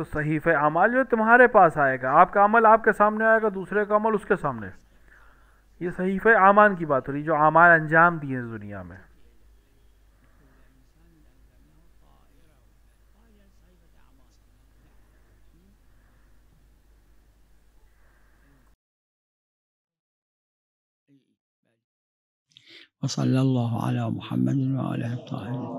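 A man recites in a melodic chanting voice over a microphone.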